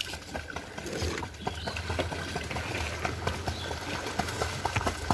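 Water splashes and churns as a swimmer strokes through a pond.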